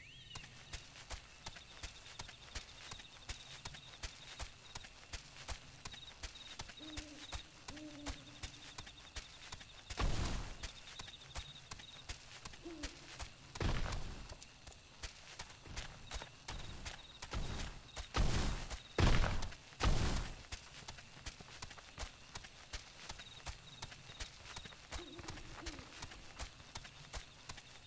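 A mount runs with steady, quick footfalls on grass.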